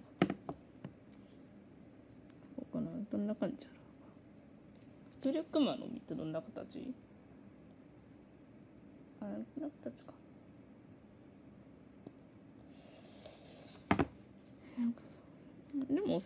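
A pencil sketches on paper.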